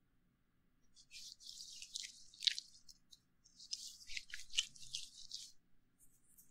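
A young woman whispers close to a microphone.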